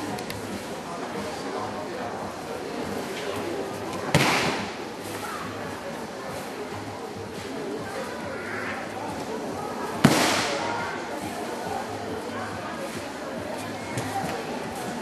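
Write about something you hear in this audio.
Bare feet shuffle and slide across a mat.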